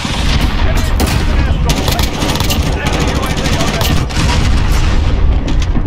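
A rifle fires rapid shots at close range.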